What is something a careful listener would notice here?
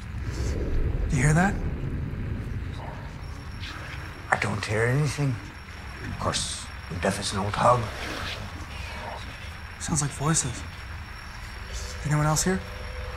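A man speaks quietly in low tones nearby.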